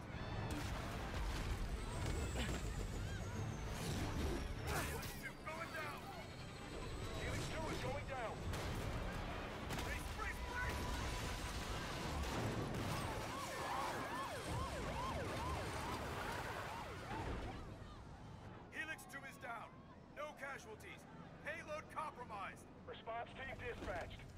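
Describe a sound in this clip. A heavy armoured truck crashes and tumbles with loud metallic impacts.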